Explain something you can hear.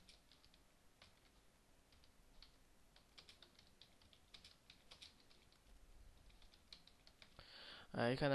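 Keys clack quickly on a computer keyboard.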